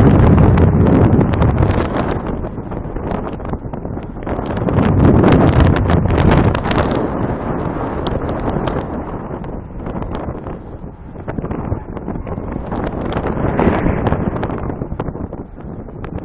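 Strong wind rushes and buffets loudly against the microphone outdoors.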